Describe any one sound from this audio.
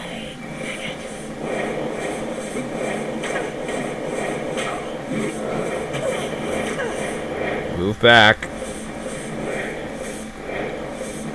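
Fiery blasts burst and roar in quick succession.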